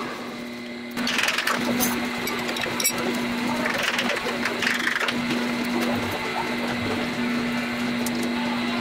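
A machine motor hums steadily.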